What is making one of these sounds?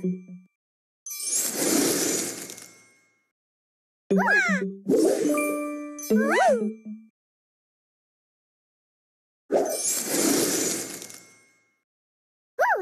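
Sparkling whooshes sweep by as pieces clear.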